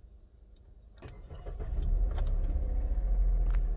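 A small petrol hatchback's engine cranks and starts.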